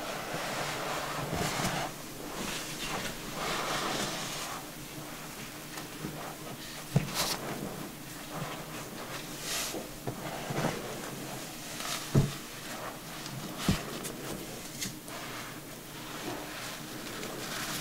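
A towel rubs against hair and skin.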